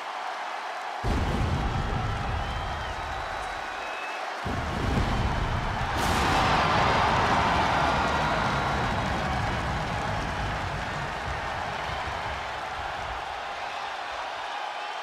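Pyrotechnics burst and rumble with deep booms.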